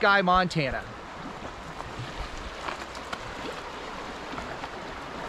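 A shallow river rushes and burbles over stones outdoors.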